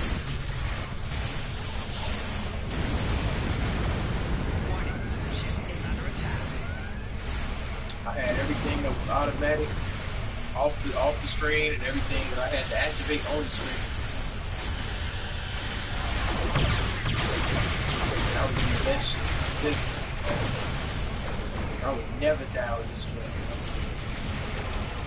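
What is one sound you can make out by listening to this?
Laser weapons fire and blast in rapid bursts.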